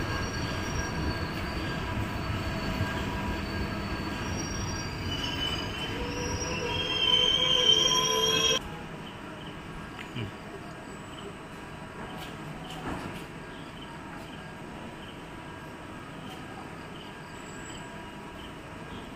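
A train rolls slowly along, rumbling and clattering on the rails.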